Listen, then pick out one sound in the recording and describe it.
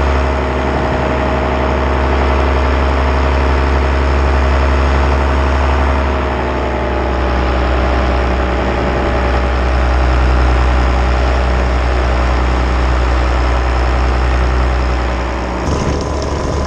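A paramotor engine drones at cruise.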